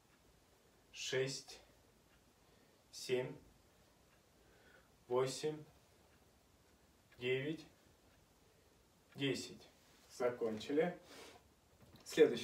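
A young man counts aloud calmly in short bursts, close by.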